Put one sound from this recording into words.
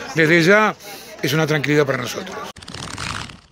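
An elderly man speaks calmly close to a microphone.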